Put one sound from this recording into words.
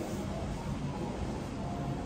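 A bedsheet flaps as a man shakes it out.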